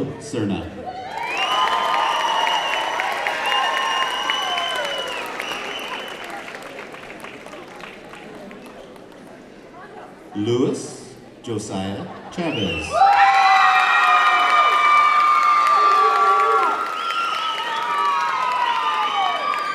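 A crowd cheers and whoops loudly in a large hall.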